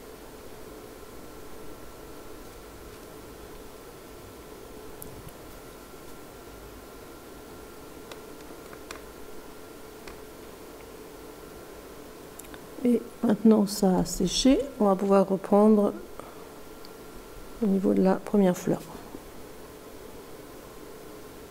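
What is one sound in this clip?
A paintbrush strokes softly across paper.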